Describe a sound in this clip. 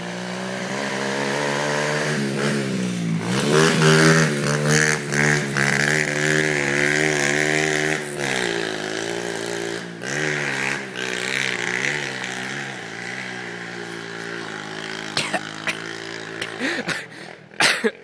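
A dirt bike engine revs loudly close by, rising and falling in pitch.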